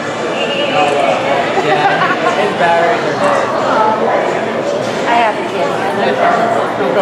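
A crowd of people chatters indoors.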